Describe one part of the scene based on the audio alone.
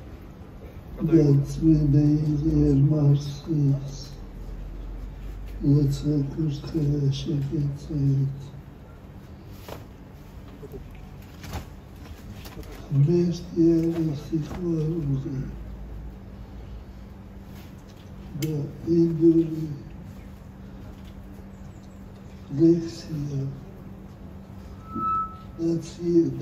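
An elderly man speaks slowly and haltingly into a microphone, heard through a loudspeaker, in short bursts with pauses.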